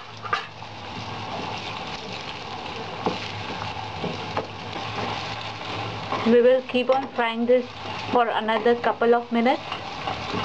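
A metal spatula scrapes and knocks against a metal pan.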